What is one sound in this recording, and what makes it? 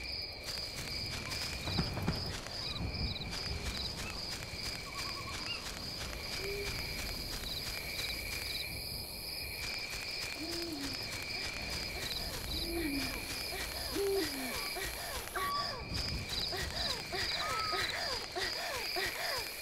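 Footsteps rustle through grass at a steady pace.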